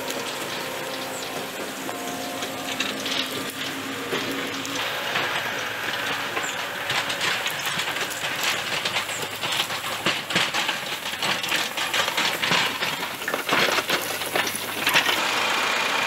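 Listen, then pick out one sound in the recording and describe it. A loader's diesel engine rumbles nearby.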